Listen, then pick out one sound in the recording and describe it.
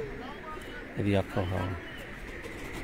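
A pigeon coos low, close by.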